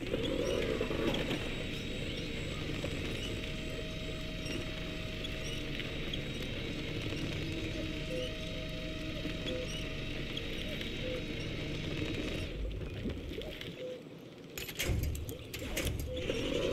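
A truck engine rumbles and strains through deep mud.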